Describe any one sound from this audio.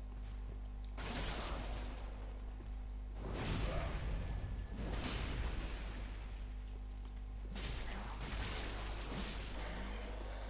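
Swords swing and clash in a fight.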